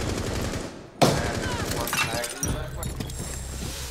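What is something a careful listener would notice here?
An explosive charge blasts through a wall with a loud bang.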